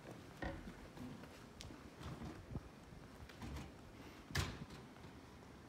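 Footsteps sound on a hard floor nearby.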